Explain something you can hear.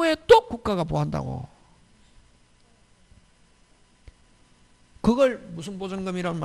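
A middle-aged man lectures with animation through a clip-on microphone.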